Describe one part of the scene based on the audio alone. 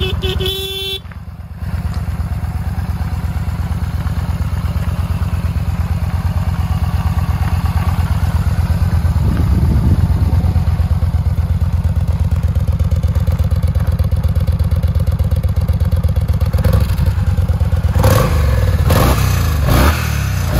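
A motorcycle engine idles with a steady, rapid rumble close by.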